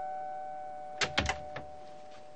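A door clicks open.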